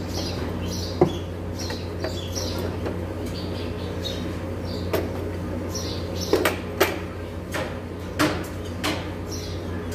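Metal tools clink and knock against an engine.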